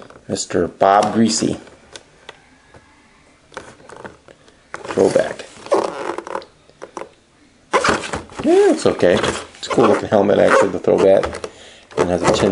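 Fingers handle and turn a plastic display case.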